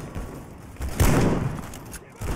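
A rifle fires with a sharp crack.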